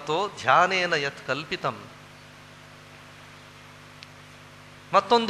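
A man speaks with animation into a microphone, heard through a loudspeaker in a hall.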